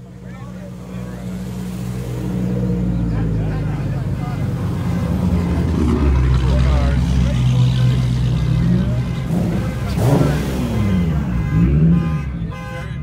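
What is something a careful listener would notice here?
A car engine rumbles and revs nearby.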